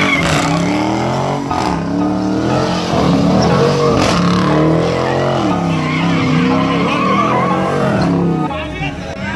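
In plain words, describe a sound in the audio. A car engine revs hard and loud, rising and falling.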